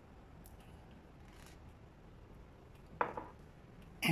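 A glass jar is set down on a counter with a light knock.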